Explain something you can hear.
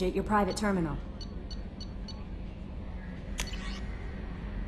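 Soft electronic blips sound as menu items are selected.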